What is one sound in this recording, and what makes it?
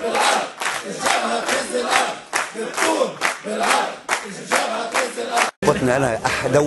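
Hands clap in a rhythm.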